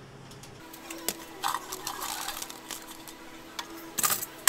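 Fries tumble from a basket and rustle onto paper.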